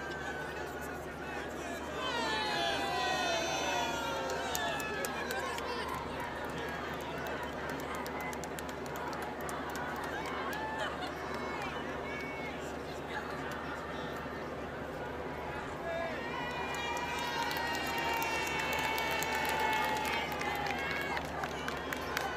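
A large outdoor crowd cheers and shouts excitedly, with high voices calling out close by.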